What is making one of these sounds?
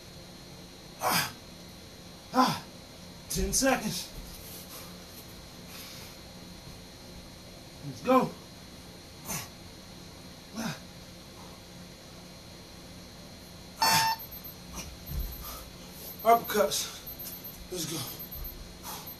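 A man breathes out hard in short, voiced bursts close by.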